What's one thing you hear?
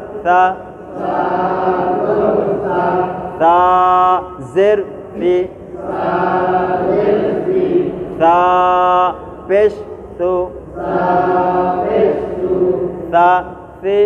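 A man chants and recites melodiously, close by.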